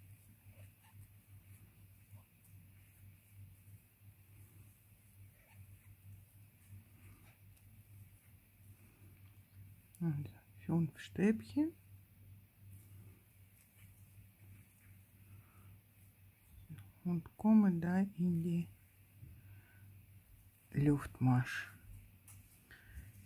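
A metal crochet hook pulls through yarn.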